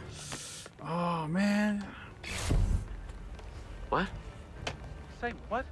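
Footsteps tap on a hard wooden floor.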